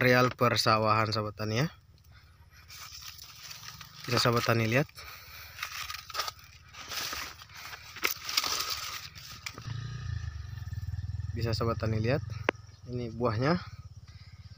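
Dry leaves rustle and crackle as someone pushes through tall plants.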